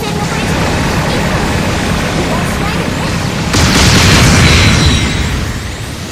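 A beam gun fires with a loud blast.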